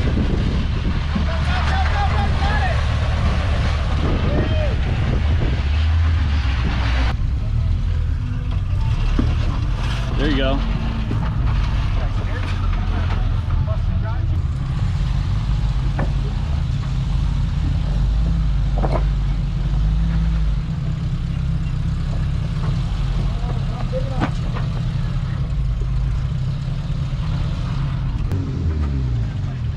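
An engine rumbles low as an off-road vehicle crawls over rock.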